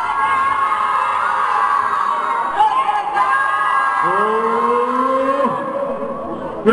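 A crowd of young men sings loudly together nearby.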